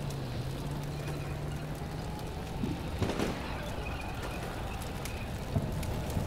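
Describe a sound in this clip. A burning vehicle crackles with fire.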